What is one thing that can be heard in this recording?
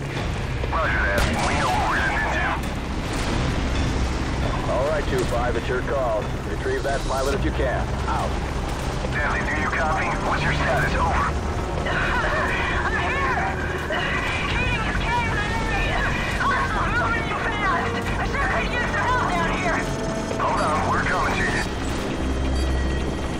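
A helicopter's rotor drones steadily overhead.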